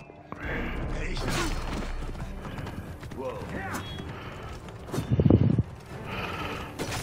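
Horse hooves gallop on a dirt path.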